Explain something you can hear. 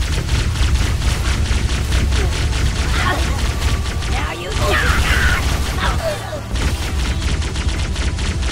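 Energy guns fire rapid bursts of sharp zaps.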